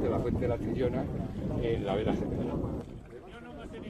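Middle-aged men laugh and talk together cheerfully.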